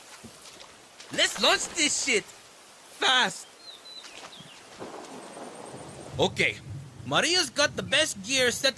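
A young man speaks casually up close.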